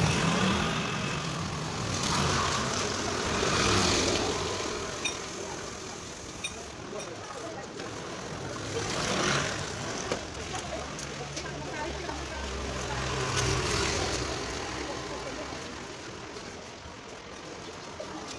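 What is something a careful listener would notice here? A trowel scrapes and smooths wet cement in repeated strokes.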